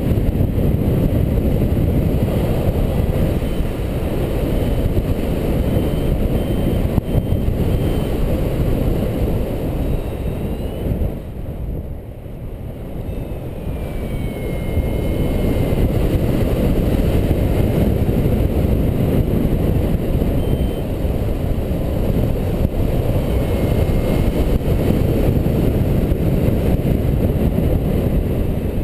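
Wind rushes loudly and steadily outdoors, dipping briefly midway.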